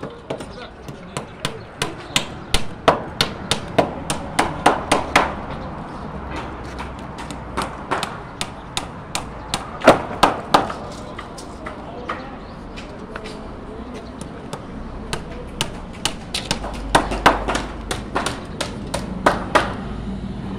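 Sharp metal knocks ring out rapidly from hammering on steel rods.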